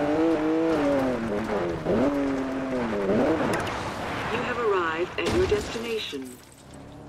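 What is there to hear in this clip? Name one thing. Tyres skid on loose dirt.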